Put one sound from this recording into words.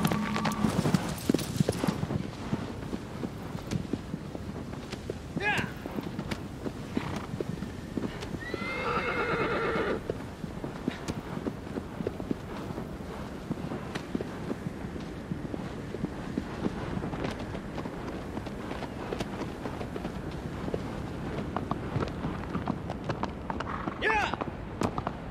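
A horse gallops over soft ground with rapid hoofbeats.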